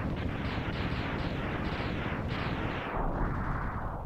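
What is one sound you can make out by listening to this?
Rapid video game explosions burst one after another.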